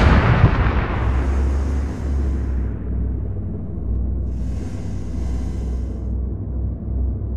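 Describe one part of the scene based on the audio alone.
A tank engine rumbles.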